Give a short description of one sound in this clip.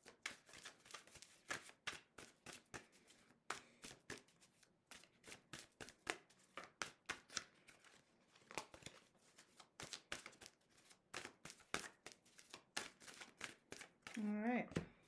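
Cards riffle and snap as they are shuffled by hand.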